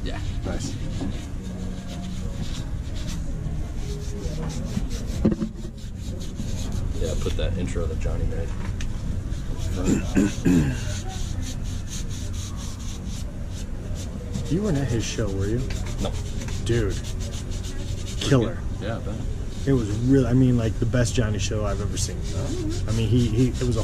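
A cloth rubs and scrubs against a shoe.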